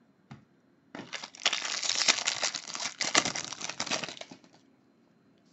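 A foil wrapper crinkles and tears loudly.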